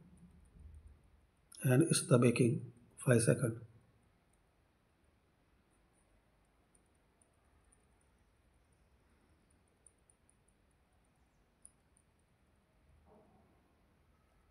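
Laptop keys click softly as a finger presses them.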